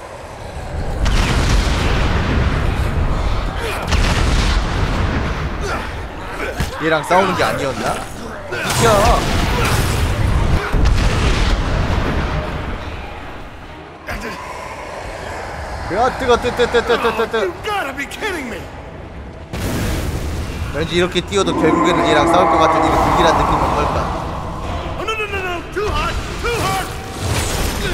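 Swords slash and clang in a fight.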